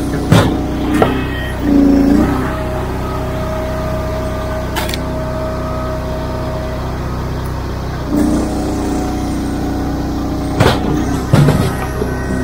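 Split pieces of wood knock and clatter.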